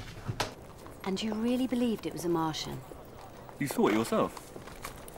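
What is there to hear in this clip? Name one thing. Horse hooves clop on a cobbled street.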